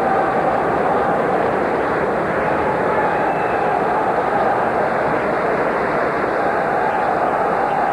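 A large crowd cheers and roars loudly in a vast echoing arena.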